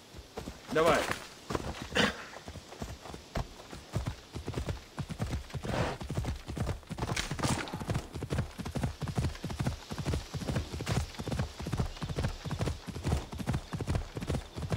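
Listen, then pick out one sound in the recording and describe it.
A horse's hooves thud in a steady rhythm at a gallop.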